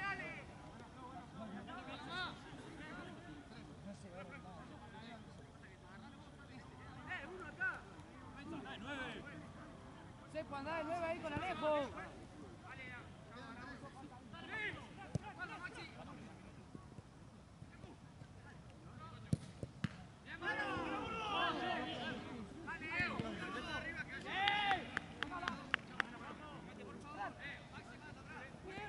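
Young men shout and call out to each other across an open pitch outdoors.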